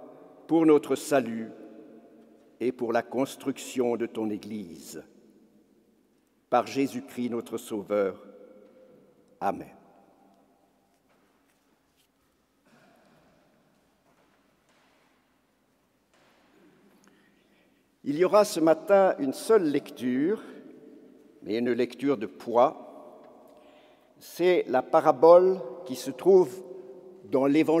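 An elderly man speaks slowly and solemnly into a microphone, echoing through a large hall.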